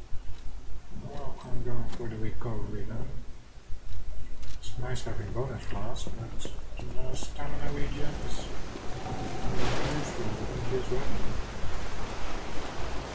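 A man talks calmly and casually close to a microphone.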